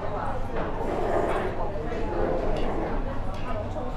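A young woman slurps noodles close by.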